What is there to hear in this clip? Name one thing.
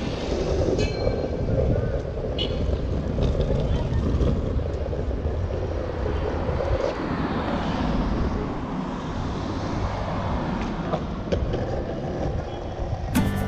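Skateboard wheels roll and rumble steadily on rough asphalt.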